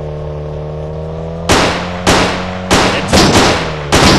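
A car crashes into another car with a loud bang.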